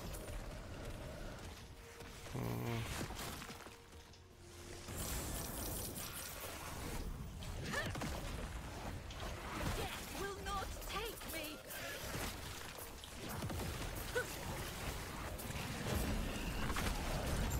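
Video game spell effects crackle and boom.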